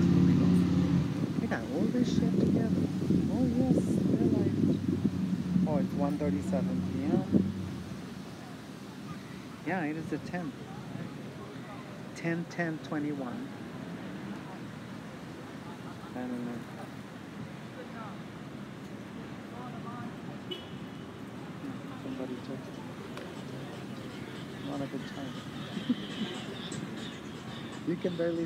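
A middle-aged woman talks close to a microphone outdoors.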